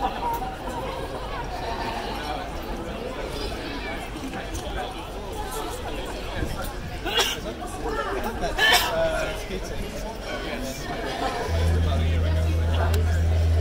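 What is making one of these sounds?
Ukuleles strum along with the singers.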